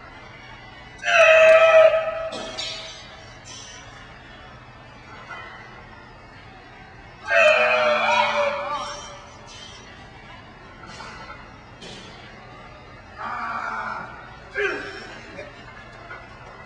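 A woman shouts encouragement loudly up close.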